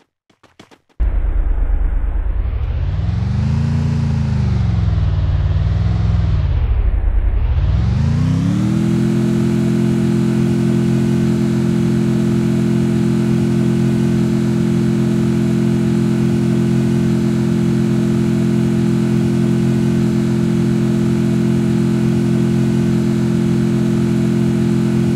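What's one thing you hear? A jeep engine revs as it pulls away, then drones at a steady pitch while cruising.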